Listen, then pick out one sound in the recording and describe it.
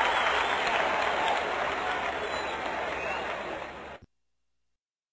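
A rock song plays loudly and then cuts off abruptly.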